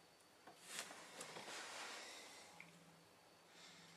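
Small objects rustle and knock as they are picked up from a table.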